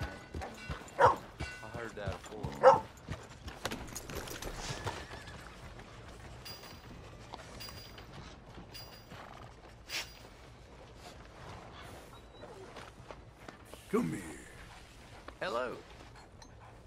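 A dog barks and whines.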